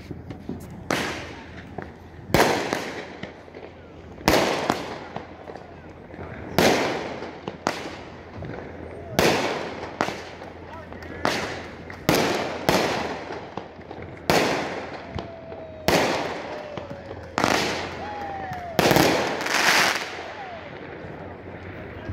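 Firework sparks crackle and fizz after each burst.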